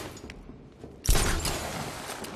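A heavy body lands on a metal floor with a loud thud.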